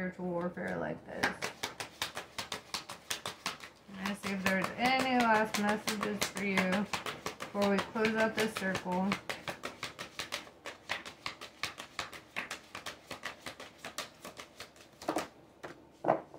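Playing cards riffle and flap as they are shuffled.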